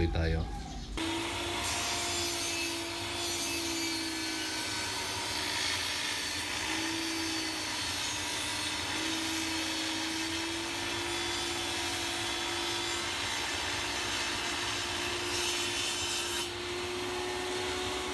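A table saw whirs steadily while cutting through a tile.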